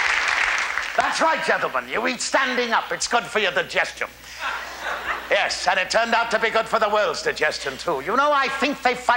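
An elderly man speaks with animation in a theatrical voice.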